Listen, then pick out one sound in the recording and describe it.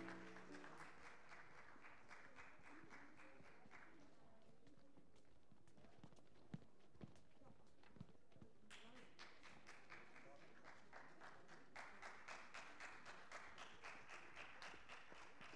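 Children's footsteps tap across a wooden stage.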